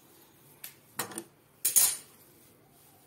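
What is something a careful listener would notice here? Fabric rustles and crinkles as hands handle it.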